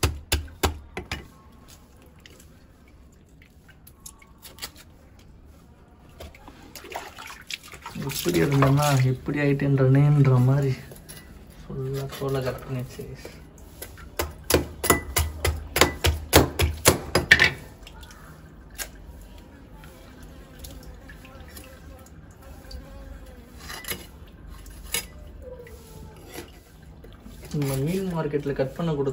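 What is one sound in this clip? A knife taps and knocks against a wooden chopping board.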